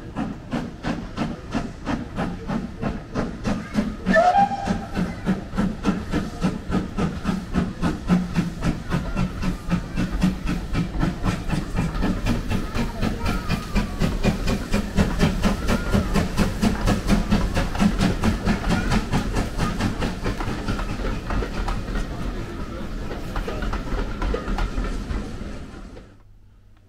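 A steam locomotive chuffs rapidly and steadily as it pulls carriages past.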